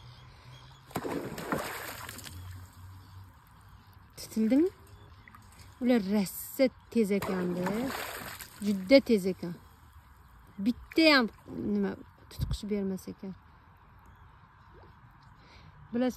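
Water splashes as it is scooped up and poured back out.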